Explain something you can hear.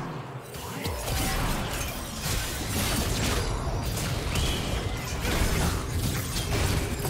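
Game characters' attacks clash and hit with sharp impacts.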